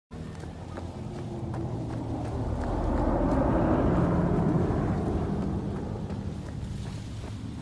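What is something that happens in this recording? Footsteps tread steadily on a dirt path.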